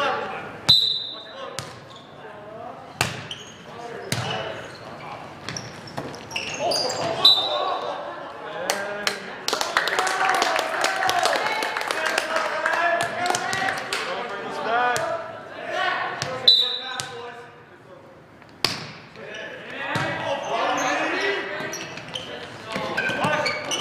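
A volleyball is struck with sharp slaps, echoing in a large hall.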